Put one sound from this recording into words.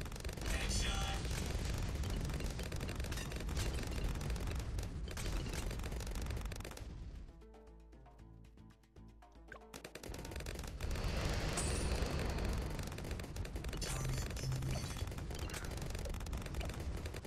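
Cartoon explosions boom.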